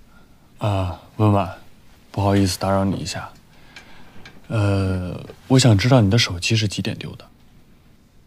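A young man speaks quietly and hesitantly, close by.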